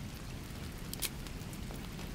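A game menu button clicks.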